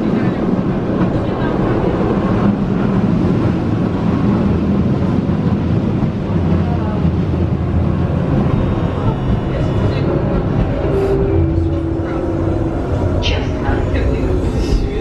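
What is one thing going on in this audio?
A tram rumbles and rattles steadily along its tracks.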